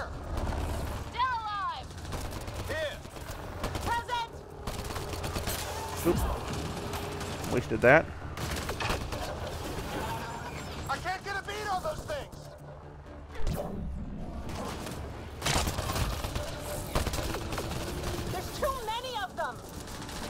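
Energy blasts from a game crackle and boom.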